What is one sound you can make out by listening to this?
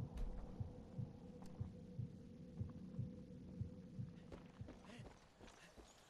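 Footsteps thud steadily on a paved road.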